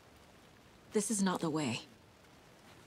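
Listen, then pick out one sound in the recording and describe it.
A woman speaks a few words briefly nearby.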